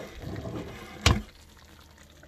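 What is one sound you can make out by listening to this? A clay lid clinks down onto a clay pot.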